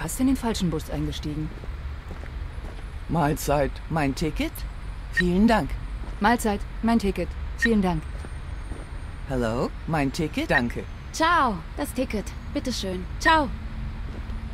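A woman speaks in a friendly way, close by.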